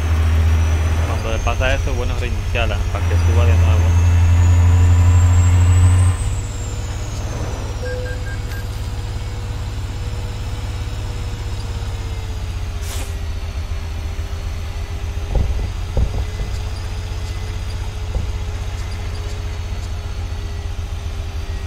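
A diesel semi truck engine drones while cruising.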